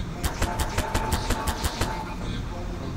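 A game tool gun zaps several times in quick succession.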